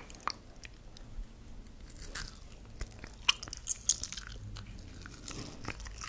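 A woman bites and chews something soft very close to a microphone.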